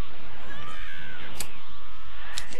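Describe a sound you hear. An energy blast bursts with a loud whoosh.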